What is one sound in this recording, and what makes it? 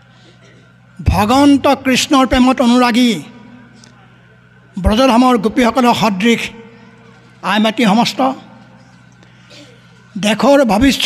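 A middle-aged man speaks through a loudspeaker in slow, measured phrases with pauses, echoing outdoors.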